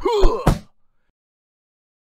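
A punch lands with a sharp smack.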